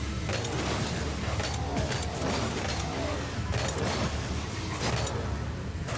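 Engines roar and rev steadily.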